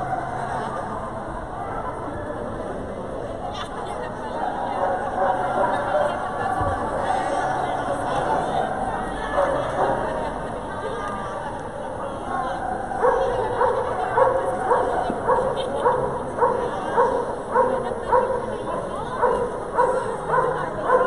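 A crowd of many people chatters in a large echoing hall.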